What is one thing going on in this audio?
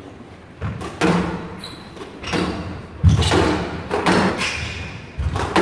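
Sneakers squeak and thud on the court floor.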